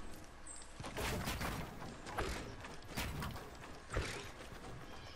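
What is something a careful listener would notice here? Wooden walls are built with sharp clacks.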